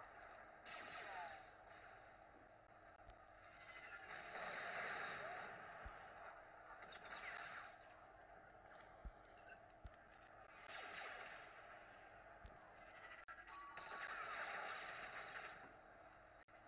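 Laser blasts and explosions crackle in repeated noisy bursts.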